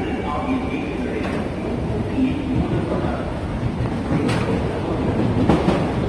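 A train rolls into an elevated station with a low rumble.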